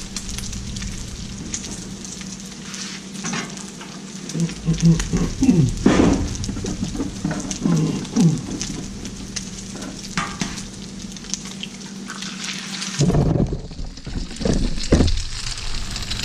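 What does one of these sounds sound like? Bacon sizzles and crackles on a hot griddle.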